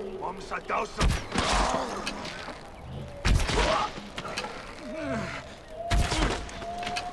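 A bowstring snaps as arrows are shot.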